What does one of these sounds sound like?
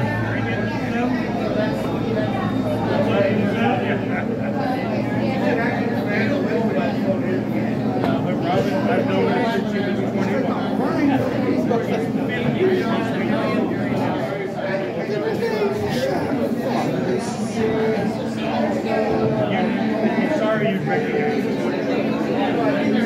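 A crowd of men and women chatters steadily in the background.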